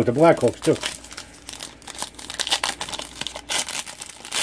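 A plastic wrapper crinkles and tears as hands pull it open.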